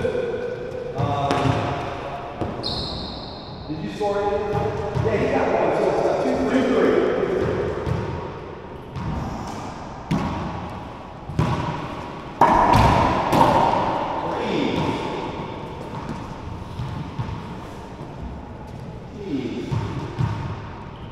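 A rubber ball smacks off walls and rackets with sharp, echoing cracks.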